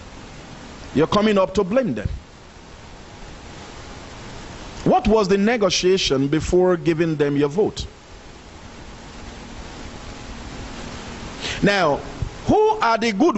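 A man speaks into a microphone with slow pauses, close by.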